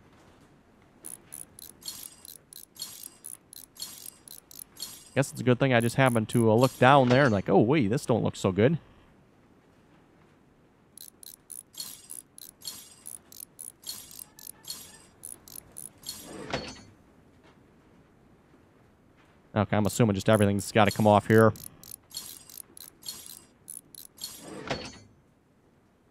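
A ratchet wrench clicks rapidly as bolts are loosened.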